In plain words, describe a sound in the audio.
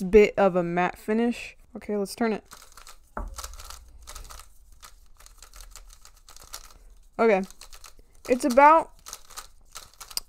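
Plastic puzzle pieces click and clack as they are twisted.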